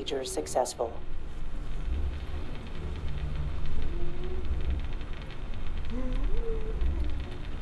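A man speaks briefly up close.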